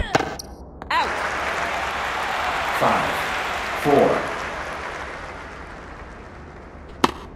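A crowd cheers and applauds, then slowly fades.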